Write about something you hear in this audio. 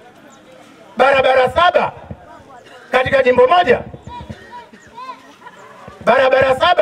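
A man speaks loudly and forcefully into a microphone, heard through a loudspeaker.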